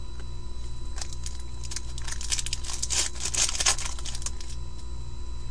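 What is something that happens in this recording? Foil card wrappers crinkle and tear as hands open them.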